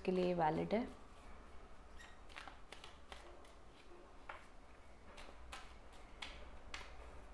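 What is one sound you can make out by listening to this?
Cards riffle and flick as a deck is shuffled by hand.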